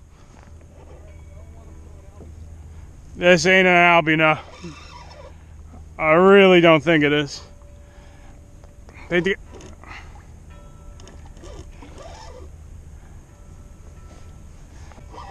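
Small waves lap against a kayak's hull.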